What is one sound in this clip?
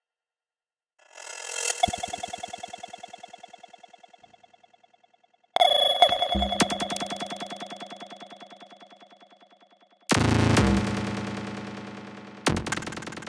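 Short electronic tones play, each followed by rapid echoes that bounce and slowly fade.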